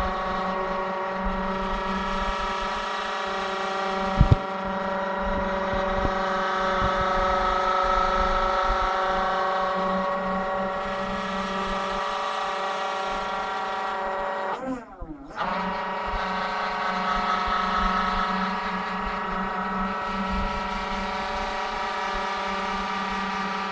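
A hydraulic motor hums steadily.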